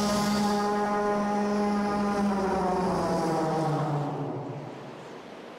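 A large creature lets out a long, slowly falling cry.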